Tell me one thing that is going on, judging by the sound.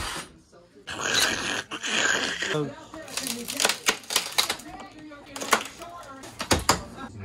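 Wooden boards knock and scrape as a man pulls them loose.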